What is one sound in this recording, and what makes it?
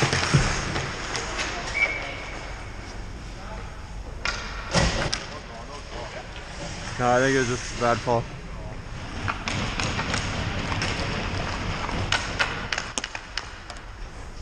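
Hockey sticks clack against the puck and the ice.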